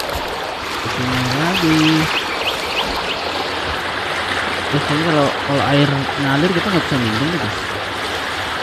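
A young man talks briefly into a microphone.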